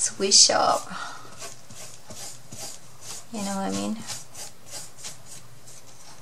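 A brush dabs paint onto card.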